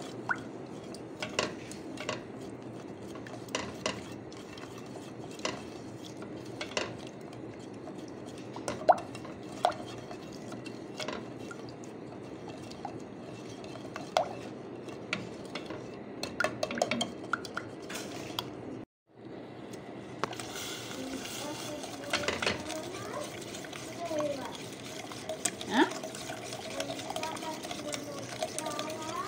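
Oil sizzles and bubbles steadily in a pan.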